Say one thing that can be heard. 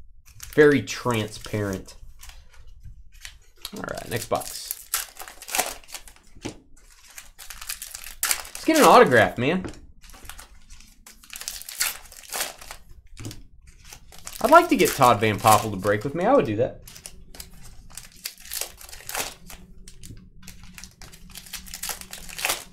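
Foil card wrappers crinkle and tear as packs are opened.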